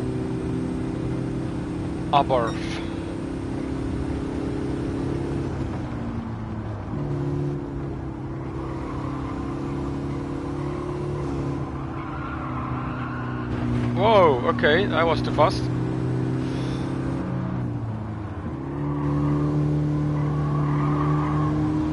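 A racing car engine drones steadily and shifts pitch as gears change.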